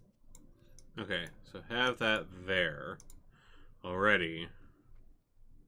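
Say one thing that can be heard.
A man speaks briefly into a microphone with animation.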